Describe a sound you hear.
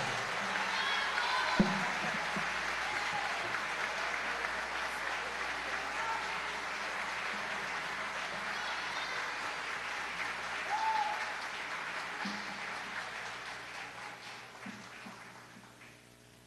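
An audience member whistles loudly.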